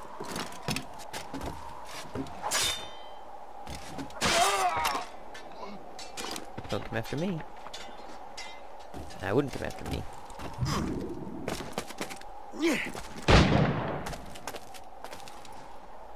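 Footsteps tap and scuff on wooden boards and stone.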